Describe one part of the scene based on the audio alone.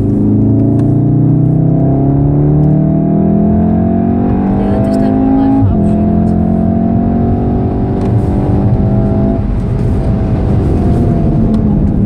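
A car engine revs higher and higher as the car speeds up, then drops at a gear change and climbs again.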